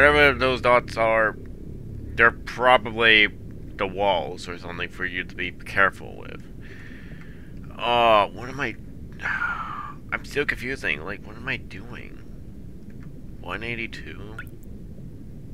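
A young man talks with animation through a microphone, close by.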